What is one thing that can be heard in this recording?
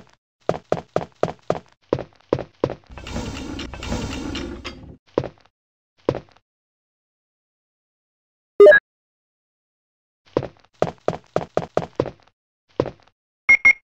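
Footsteps tap across a hard wooden floor.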